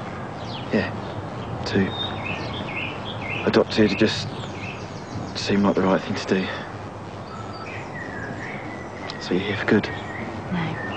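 A young man speaks quietly and softly, close by.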